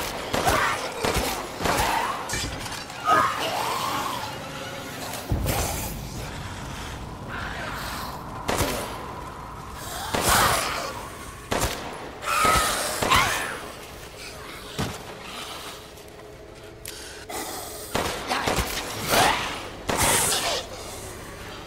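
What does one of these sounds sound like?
A creature shrieks and groans close by.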